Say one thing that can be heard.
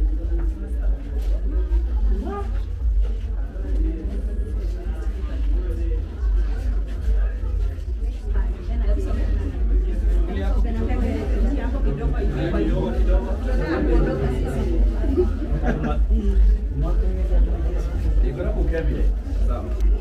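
A crowd of men talk over one another close by.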